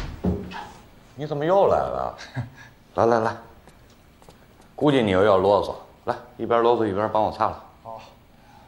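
An elderly man speaks loudly nearby.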